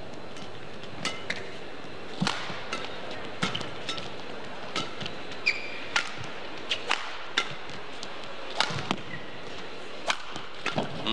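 A shuttlecock is struck sharply back and forth by rackets in a quick rally.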